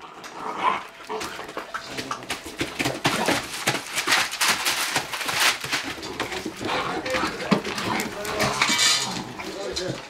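Great Dane puppies scuffle and thump on a bed.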